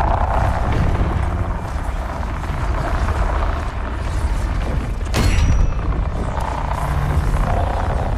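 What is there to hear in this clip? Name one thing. A beam of energy roars and crackles steadily.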